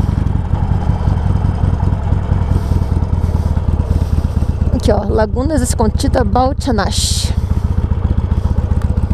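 A motorcycle engine idles with a steady, throbbing rumble close by.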